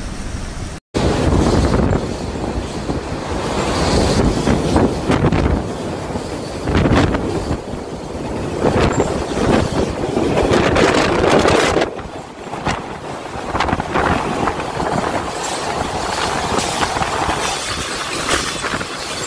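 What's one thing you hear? Heavy rain pours and strong wind gusts roar outdoors.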